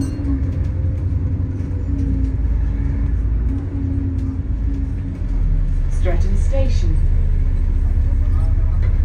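A bus engine rumbles and hums steadily while driving.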